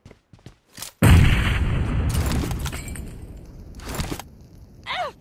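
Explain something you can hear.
A loud burst of flames whooshes up and roars, slowly dying down.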